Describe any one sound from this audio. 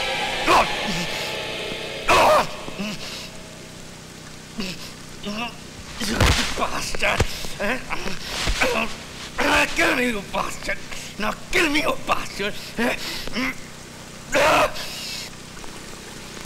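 Two men grunt and groan as they struggle.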